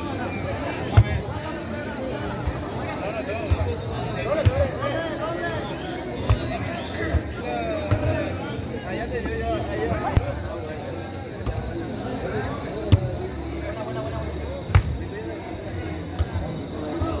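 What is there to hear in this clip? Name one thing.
A ball is kicked and struck with sharp thumps.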